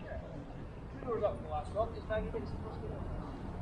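Several adults chat nearby outdoors.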